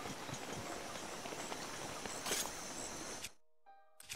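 Footsteps scuff over rock and grass.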